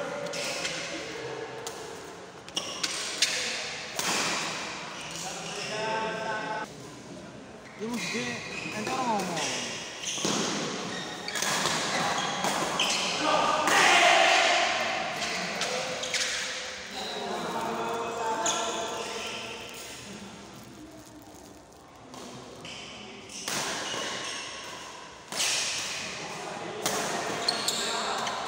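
People chatter in the background of a large echoing hall.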